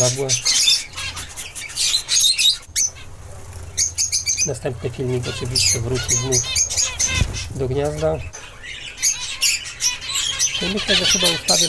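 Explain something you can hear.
Small birds chirp and twitter rapidly close by.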